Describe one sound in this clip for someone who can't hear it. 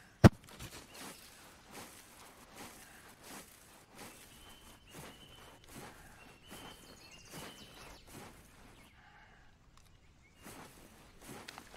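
Footsteps rustle through tall grass at a steady walking pace.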